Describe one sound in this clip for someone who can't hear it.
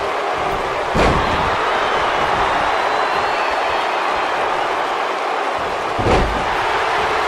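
A body slams heavily onto a wrestling ring mat with a loud thud.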